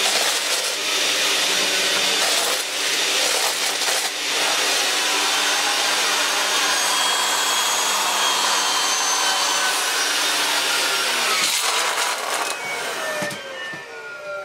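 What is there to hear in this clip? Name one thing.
A vacuum cleaner motor roars steadily, then winds down.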